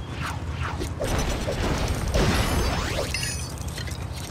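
A boulder smashes apart with a loud crunching crash.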